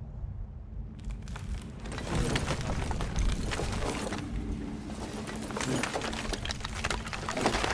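Heavy metal armour clanks and creaks as a figure shifts on the ground.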